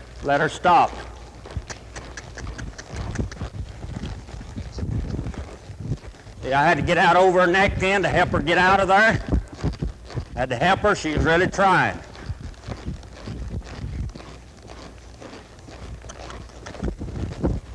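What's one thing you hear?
A horse's hooves thud on soft dirt at a lope.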